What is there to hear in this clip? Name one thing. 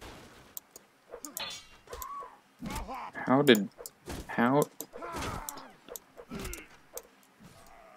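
Swords and weapons clash and strike in a fight.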